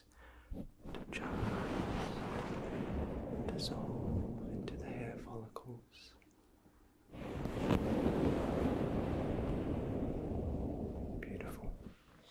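A towel rustles and rubs close to a microphone.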